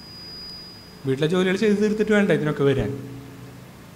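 A young man speaks calmly into a microphone, heard through a loudspeaker.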